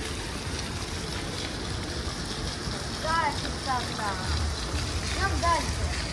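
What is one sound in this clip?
Water splashes steadily down a rocky waterfall close by.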